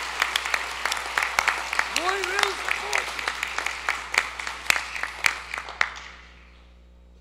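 An audience applauds and then the applause fades away.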